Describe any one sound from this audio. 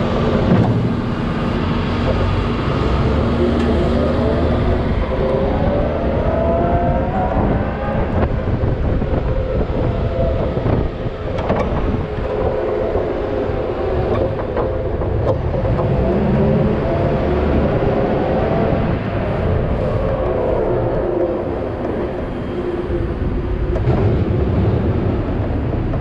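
A loader's diesel engine rumbles and whines steadily up close.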